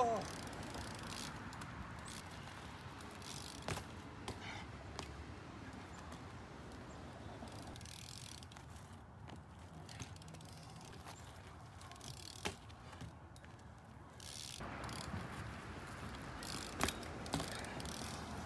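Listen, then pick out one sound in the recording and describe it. BMX bike tyres roll over asphalt outdoors.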